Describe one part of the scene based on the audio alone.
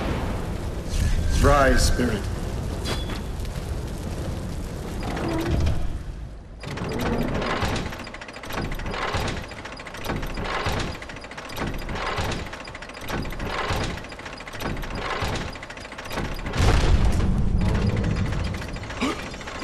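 Flames crackle and roar steadily.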